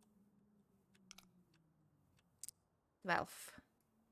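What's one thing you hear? A lock tumbler clicks into place.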